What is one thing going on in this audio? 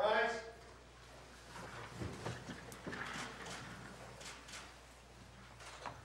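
A crowd of people rises to its feet with shuffling and rustling.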